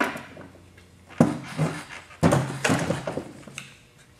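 A wooden box thumps onto a bench as it is turned upright.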